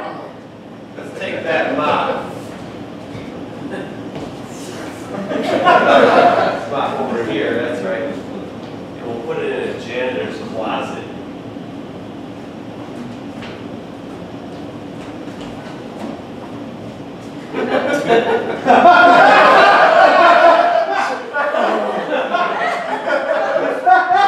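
Young men and a young woman speak loudly and with animation in a room with echo.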